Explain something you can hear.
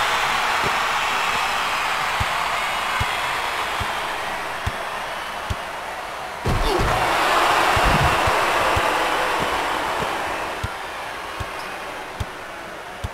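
A crowd cheers steadily throughout.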